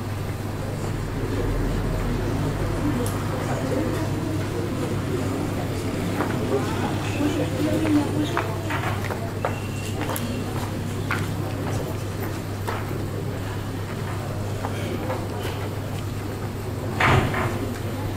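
A man speaks through a microphone and loudspeakers in a large hall.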